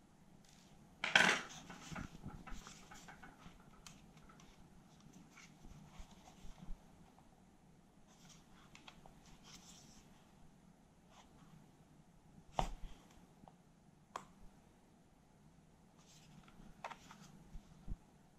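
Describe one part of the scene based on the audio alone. The plastic casing of a personal cassette player clicks and snaps as it is handled.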